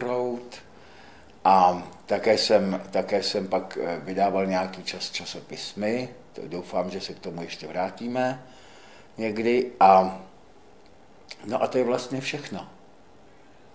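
An elderly man speaks calmly into a microphone, close up.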